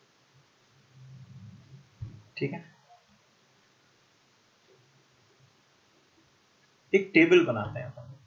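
A man speaks close to a microphone, explaining calmly.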